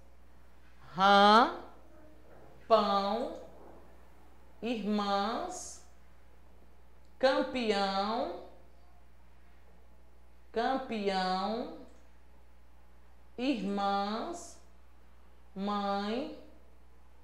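A woman speaks slowly and clearly, close to a microphone, pausing between words.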